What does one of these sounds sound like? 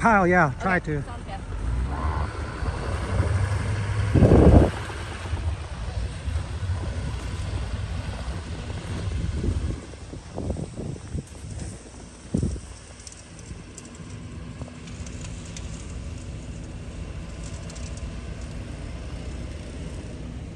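A pickup truck engine rumbles as it pushes through snow.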